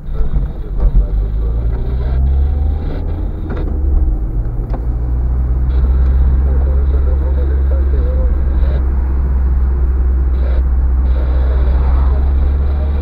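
Tyres roll over the road surface.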